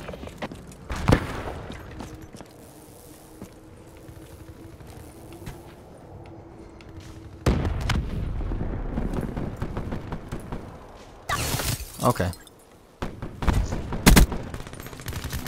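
Gunshots crack in short, loud bursts.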